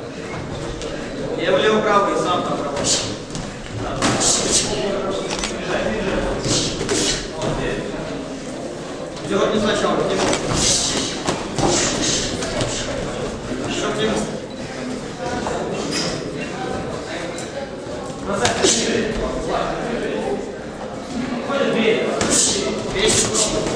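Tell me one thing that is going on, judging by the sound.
Sneakers squeak and shuffle on a canvas floor.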